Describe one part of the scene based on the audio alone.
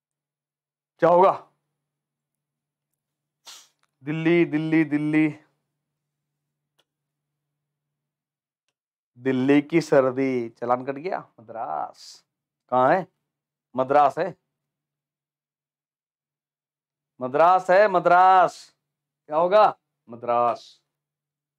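A man speaks with animation into a close microphone, in short bursts with pauses.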